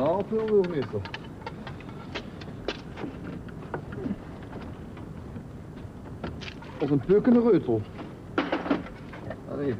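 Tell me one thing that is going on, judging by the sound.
Metal clicks and scrapes as a tool works at a door lock.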